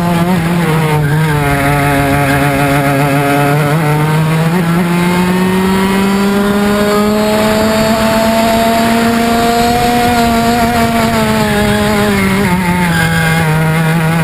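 A small kart engine buzzes loudly up close, its pitch rising and falling with the throttle.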